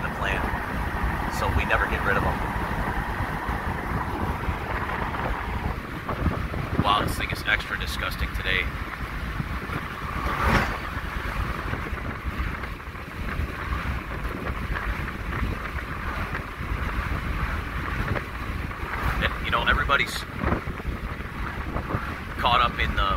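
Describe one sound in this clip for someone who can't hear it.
Road noise and engine rumble fill the cab of a pickup truck driving at highway speed.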